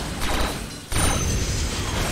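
Metal clanks and whirs.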